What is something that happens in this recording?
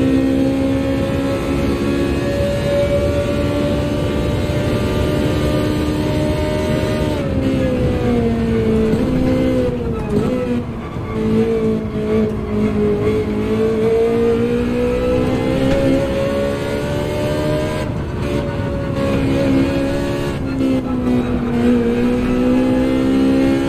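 A racing car engine roars at high revs, its pitch dropping sharply while slowing and then climbing again.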